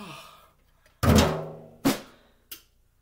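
A snare drum is struck sharply.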